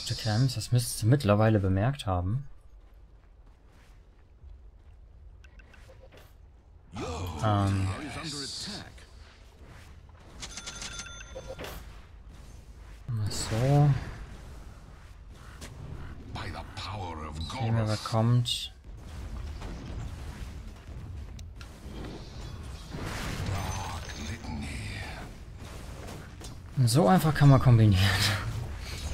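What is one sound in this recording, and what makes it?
A young man talks with animation into a close microphone, in bursts.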